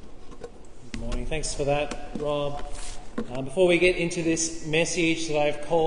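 A second man speaks calmly into a microphone.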